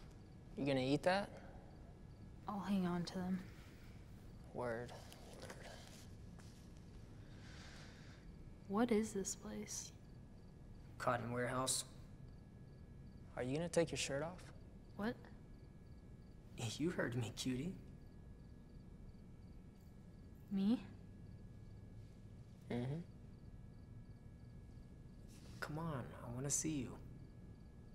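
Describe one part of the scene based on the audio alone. A young woman speaks quietly in short phrases nearby.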